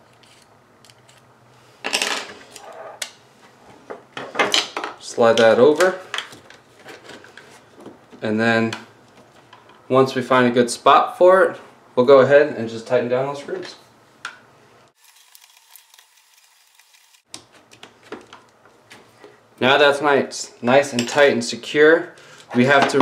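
Plastic parts click and rustle as they are handled.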